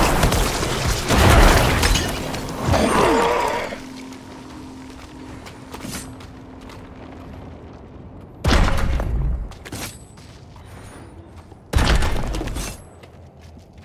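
Spells and blows crash and burst in a game battle.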